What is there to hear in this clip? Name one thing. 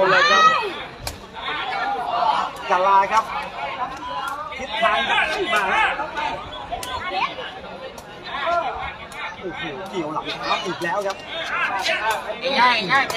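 A large crowd of young people cheers and shouts outdoors.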